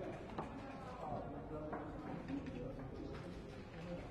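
Dice rattle in a cup and tumble onto a wooden board.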